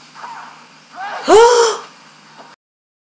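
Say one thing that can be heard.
A young man exclaims in surprise close to a microphone.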